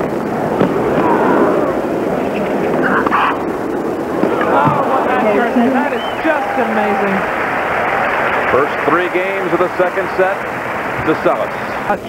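A large crowd murmurs steadily in the background.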